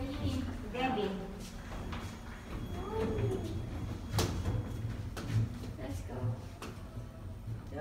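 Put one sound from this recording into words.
A lift button clicks.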